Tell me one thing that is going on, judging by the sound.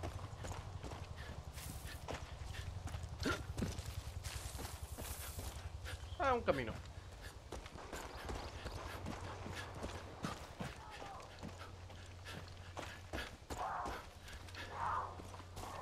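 Footsteps tread steadily on a dirt path.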